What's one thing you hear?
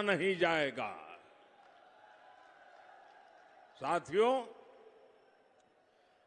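A large crowd cheers far off.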